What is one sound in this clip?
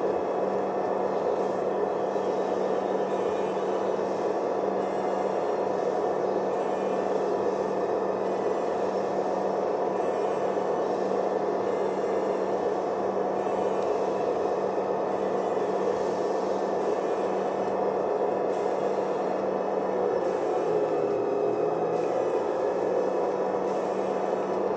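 A diesel locomotive engine rumbles steadily through a loudspeaker.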